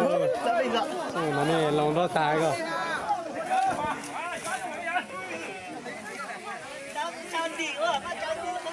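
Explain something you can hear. A crowd of men and women talk and call out excitedly outdoors.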